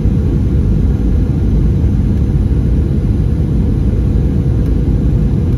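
A plane's engines roar in a steady, deep drone inside the cabin.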